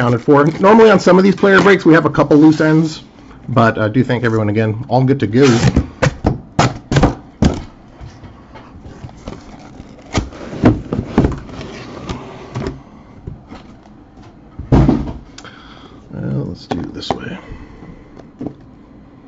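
Cardboard flaps scrape and rustle as a box is opened and handled.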